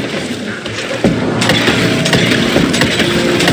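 A gun fires shots in quick bursts.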